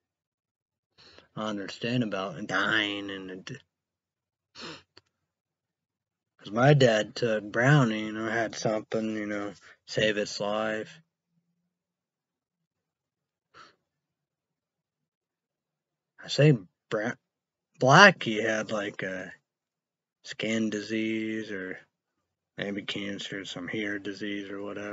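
A young man talks calmly and close to a microphone, in short bursts with pauses.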